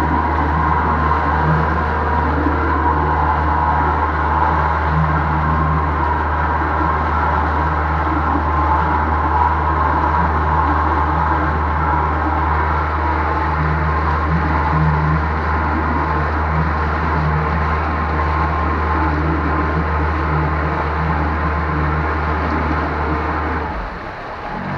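An outboard motor drones loudly and steadily close by.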